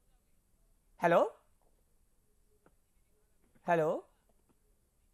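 An older man chants two short, drawn-out syllables into a microphone.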